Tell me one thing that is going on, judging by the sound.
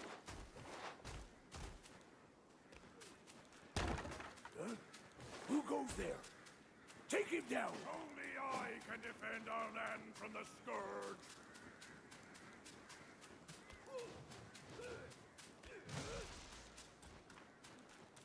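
Footsteps run quickly over dry ground and grass.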